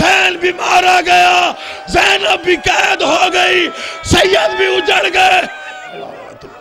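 A man chants loudly and forcefully through a loudspeaker.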